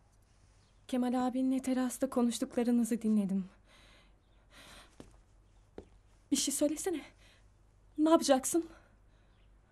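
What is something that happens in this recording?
A young woman speaks close by, upset and pleading.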